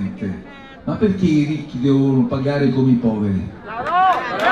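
A man speaks loudly through a microphone and loudspeakers outdoors.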